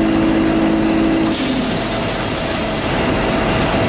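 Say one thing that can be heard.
A train rolls past with a steady rumble.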